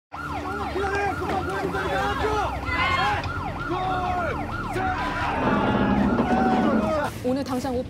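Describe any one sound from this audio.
An ambulance siren wails close by.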